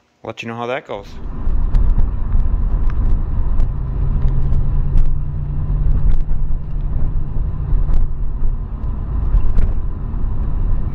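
Tyres roll along the road.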